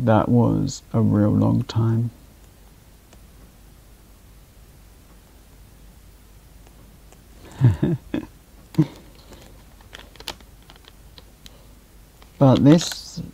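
A young man speaks casually into a nearby microphone, in short bursts.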